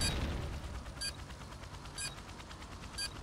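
A short electronic beep counts down, sounding once a second.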